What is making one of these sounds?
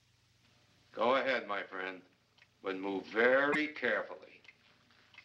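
A man speaks firmly, close by.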